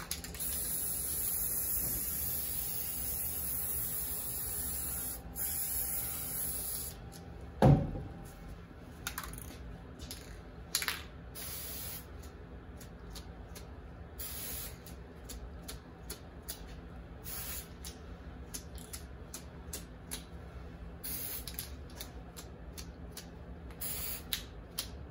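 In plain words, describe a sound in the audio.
A spray can hisses in short and long bursts.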